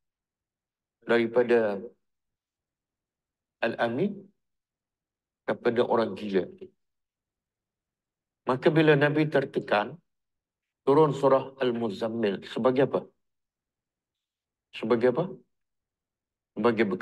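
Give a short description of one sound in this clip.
An elderly man speaks calmly in short phrases close to a microphone, with pauses between them.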